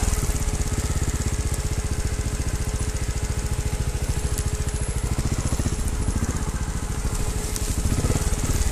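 Tyres rattle and crunch over a bumpy dirt trail.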